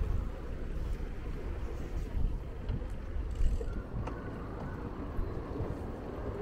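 A bicycle rolls along a paved path.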